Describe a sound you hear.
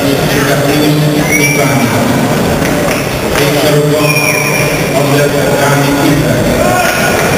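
A crowd of men and women chatters and calls out in a large echoing hall.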